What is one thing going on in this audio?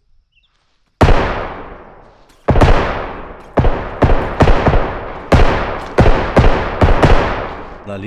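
Gunshots ring out loudly again and again, each followed by a rolling echo.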